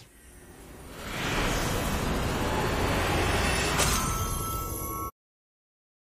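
A game's deep rumbling whoosh swells as a crystal tower is destroyed, then cuts off.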